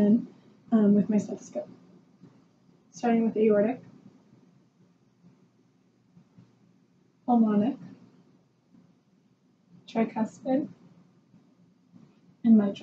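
A young woman speaks calmly in short phrases close by.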